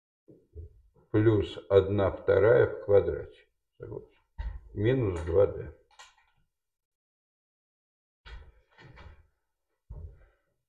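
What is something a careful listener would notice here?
A man speaks calmly in a lecturing tone, close by.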